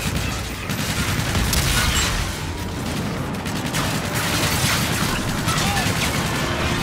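Gunfire and explosions rumble loudly.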